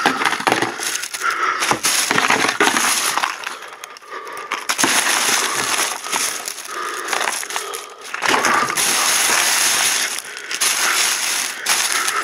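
Plastic items rattle and knock as they are handled.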